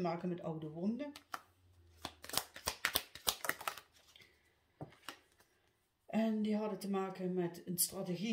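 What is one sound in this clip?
Playing cards are shuffled with soft flicks and slaps.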